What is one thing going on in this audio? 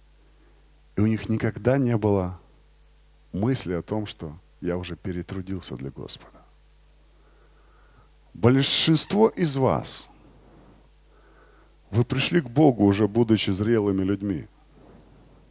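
A man speaks with animation through a microphone, in short bursts with pauses, echoing in a large hall.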